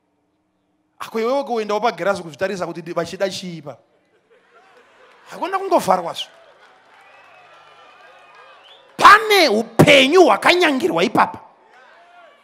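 A man preaches with animation through a microphone and loudspeakers.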